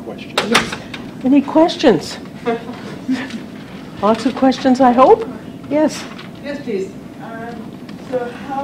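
A woman speaks calmly in a room.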